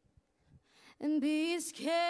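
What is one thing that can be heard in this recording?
A young woman sings loudly in a large echoing hall.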